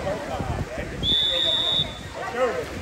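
A referee's whistle blows one short, shrill blast.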